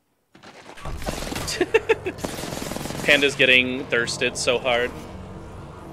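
Electricity crackles and zaps in a video game.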